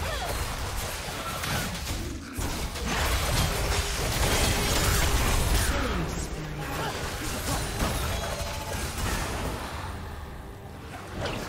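Magic blasts and sword hits crash and crackle in a fast video game battle.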